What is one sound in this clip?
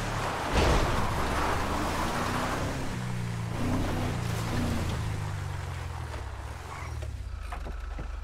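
A truck engine rumbles and revs.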